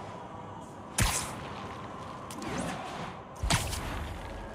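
Sharp snapping thwips ring out as webs shoot.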